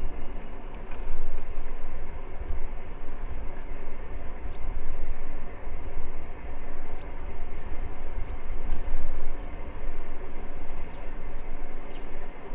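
Wind gusts roar against a microphone outdoors.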